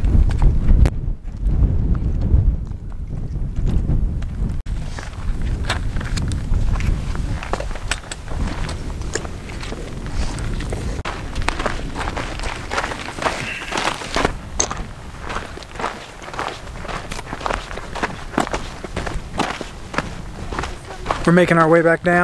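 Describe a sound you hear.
Wind blows across an open mountainside.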